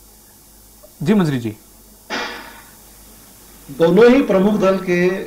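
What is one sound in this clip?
A man speaks loudly and with animation over a microphone.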